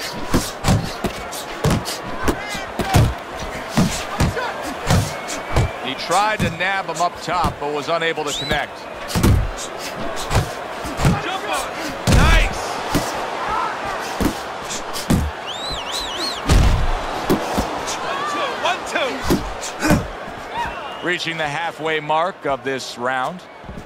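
Boxing gloves thud against a body in quick punches.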